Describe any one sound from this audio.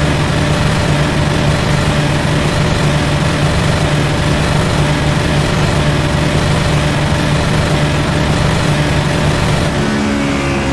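A racing car engine roars steadily at high speed, heard from inside the car.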